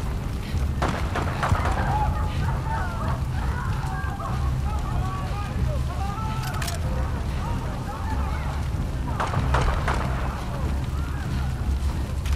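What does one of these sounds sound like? Footsteps crunch on dirt and wooden boards.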